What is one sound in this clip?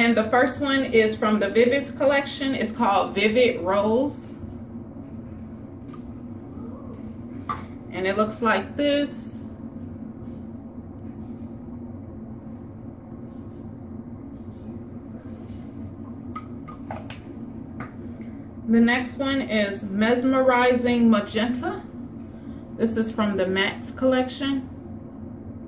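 A young woman talks calmly and close by, in short bursts.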